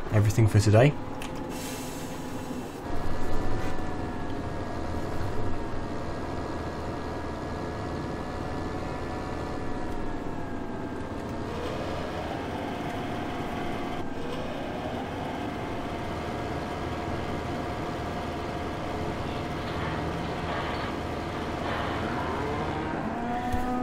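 A tractor engine hums steadily as it drives.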